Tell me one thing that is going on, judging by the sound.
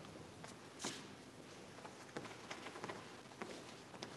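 Sheets of paper rustle close by.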